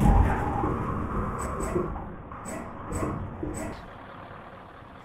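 A bus crashes through bushes and branches.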